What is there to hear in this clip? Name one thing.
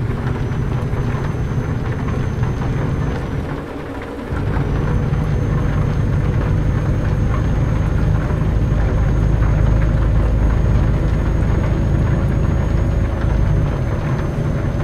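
A truck engine drones steadily, dropping briefly during a gear change.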